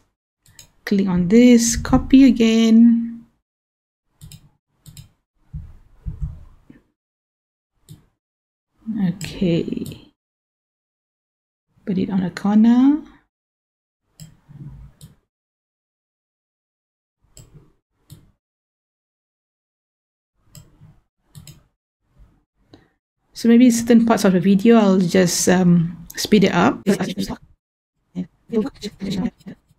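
A woman talks into a close microphone.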